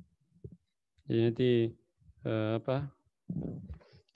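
A man speaks over an online call, reciting slowly with a drawn-out voice.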